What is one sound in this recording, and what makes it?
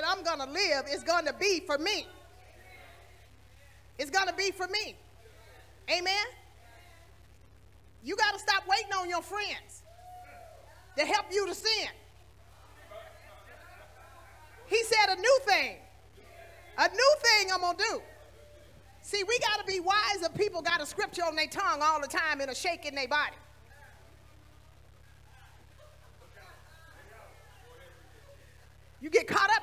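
A woman preaches through a microphone and loudspeaker, speaking in bursts with long pauses.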